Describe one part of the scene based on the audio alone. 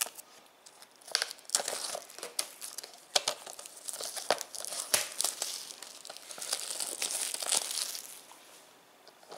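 A plastic wrapper crinkles and rustles as it is handled.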